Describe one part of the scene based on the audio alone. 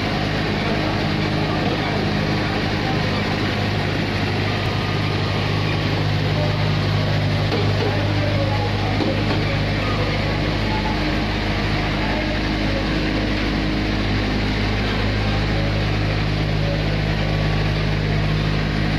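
A packing machine hums and whirs steadily.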